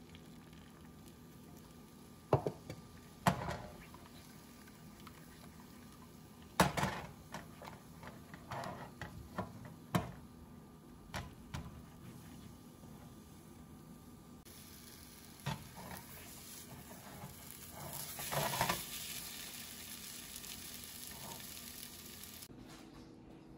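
Eggs sizzle softly in a hot pan.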